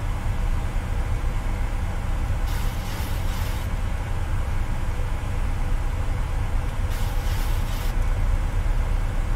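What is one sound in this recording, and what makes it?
A jet airliner's engines rumble steadily from inside the cockpit.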